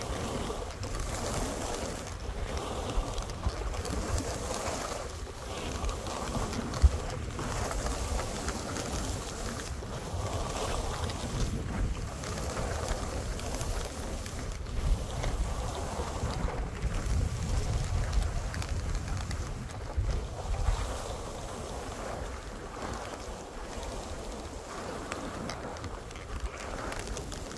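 Skis hiss and scrape over snow close by.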